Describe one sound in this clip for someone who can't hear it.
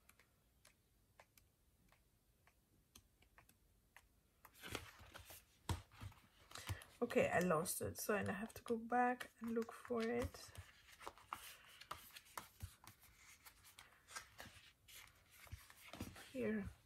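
Paper pages of a sticker book rustle as they are leafed through.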